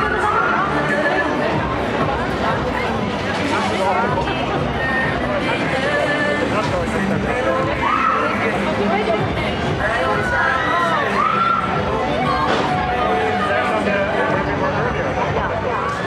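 Riders scream on a swinging fairground thrill ride.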